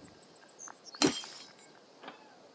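A window pane smashes and glass shatters.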